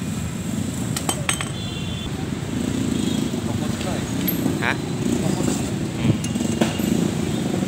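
Metal tools clink against a motorcycle engine.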